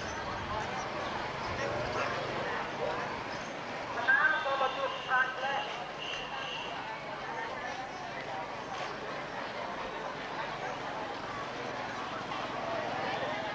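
A motorbike engine putters past.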